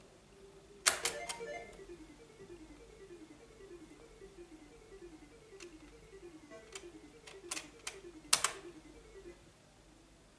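A retro computer game plays a quick run of descending electronic bleeps.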